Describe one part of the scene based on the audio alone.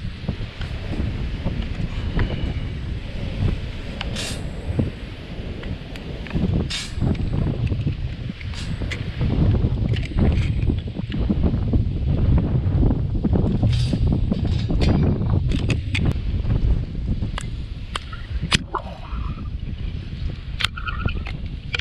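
Wind blows hard outdoors, rumbling.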